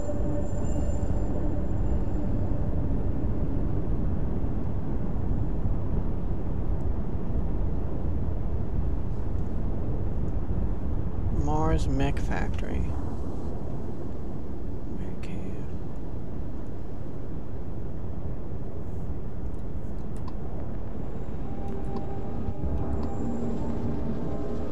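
A spaceship engine rumbles steadily and low.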